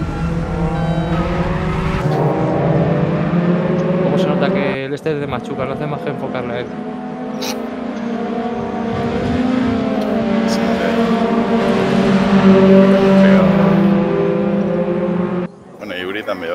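Racing car engines roar loudly at high revs.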